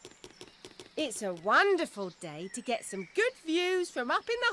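A woman speaks cheerfully in a bright, animated cartoon voice.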